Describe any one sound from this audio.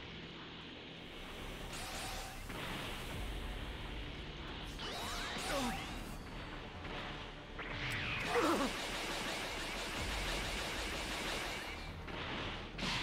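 A rushing whoosh sweeps past at high speed.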